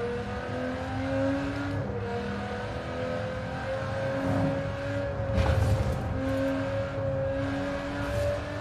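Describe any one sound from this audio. A sports car engine roars steadily at high speed, rising in pitch as it accelerates.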